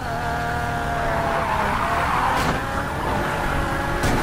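Tyres screech as a car drifts through a turn.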